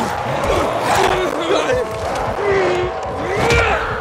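A zombie growls and snarls close by.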